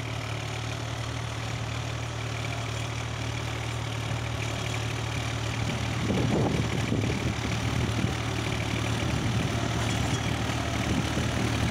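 A tractor engine hums steadily and grows louder as it comes closer.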